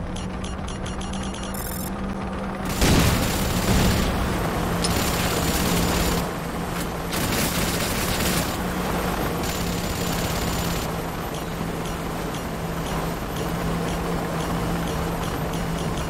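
A flying machine hums steadily overhead.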